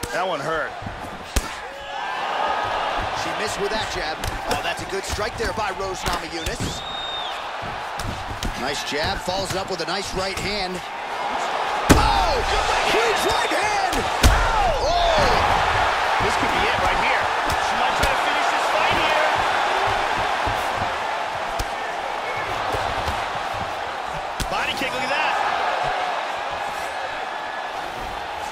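A crowd cheers and roars steadily.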